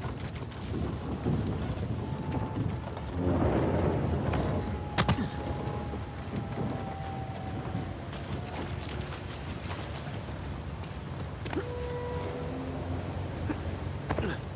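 Footsteps patter quickly over ground and grass.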